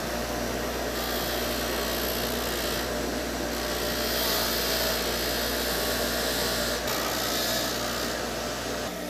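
Metal grinds with a rough hiss against a spinning wheel.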